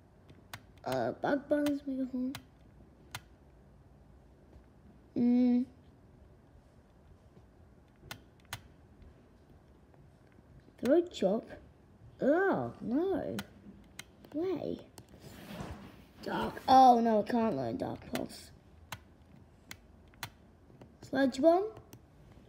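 Soft menu clicks tick as a list scrolls.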